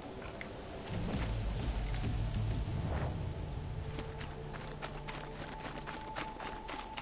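A large machine creature rumbles and clanks nearby.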